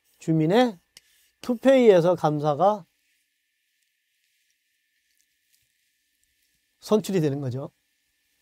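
A middle-aged man lectures with animation, close to a microphone.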